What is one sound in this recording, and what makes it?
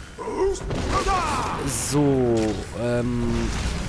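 A magic blast bursts with a crackling whoosh.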